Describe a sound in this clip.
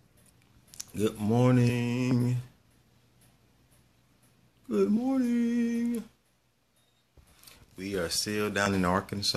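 A man speaks close to a microphone, in drawn-out, sung-like phrases.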